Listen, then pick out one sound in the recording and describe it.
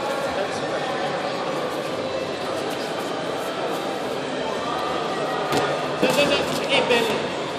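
Bare feet shuffle and thump on a mat.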